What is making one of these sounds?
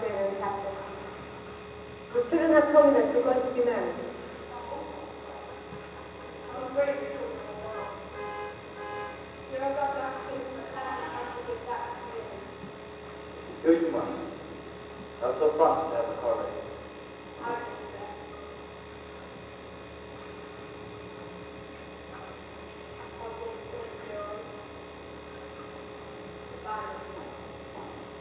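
A man speaks loudly on a stage, echoing in a large hall.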